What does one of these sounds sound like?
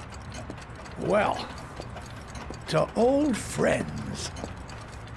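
An elderly man speaks cheerfully.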